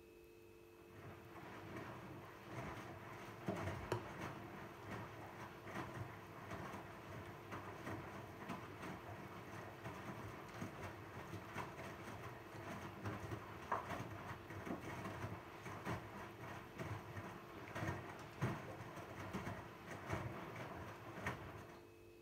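Laundry tumbles and thumps inside a washing machine drum.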